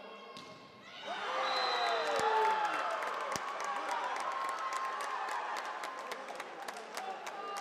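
A crowd cheers and claps loudly in a large echoing hall.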